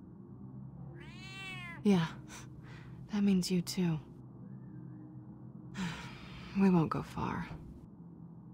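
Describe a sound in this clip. A cat meows several times.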